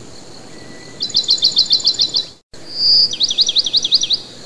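A small bird calls.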